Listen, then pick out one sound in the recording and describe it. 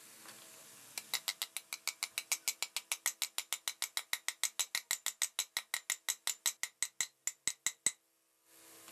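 A ratchet tool clicks rapidly and steadily against metal.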